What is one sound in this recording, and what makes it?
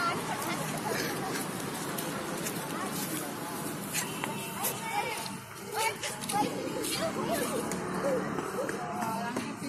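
Several women chatter nearby outdoors.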